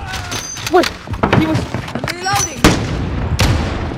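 Footsteps thud on a wooden staircase.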